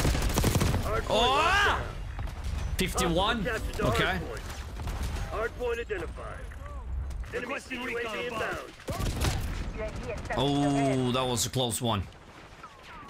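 A man talks excitedly into a close microphone.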